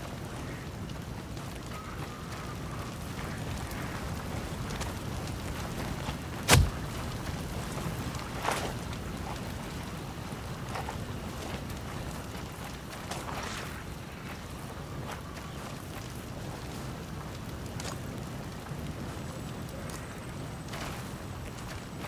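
Flames crackle from a burning wreck.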